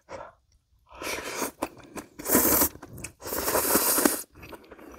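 A woman slurps noodles loudly and close up.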